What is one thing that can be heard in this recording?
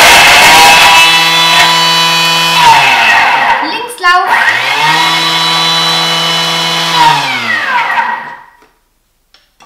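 A kitchen machine whirs loudly, its pitch rising and falling.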